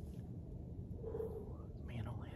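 A man blows a short note on a hand-held game call.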